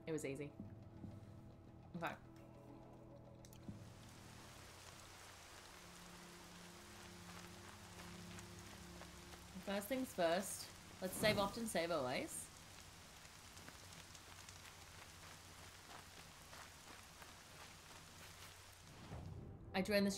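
A young woman speaks casually into a close microphone.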